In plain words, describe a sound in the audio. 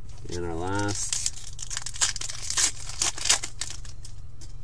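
Cards and foil wrappers rustle as packs are opened and handled.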